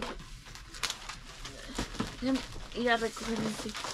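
Cardboard scrapes and thumps as a box is moved.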